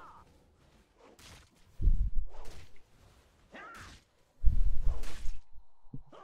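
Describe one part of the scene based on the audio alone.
Weapons clash and spells burst in a fast fantasy battle.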